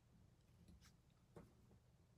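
Scissors snip through ribbon.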